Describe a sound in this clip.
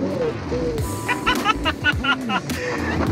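A man laughs inside a car.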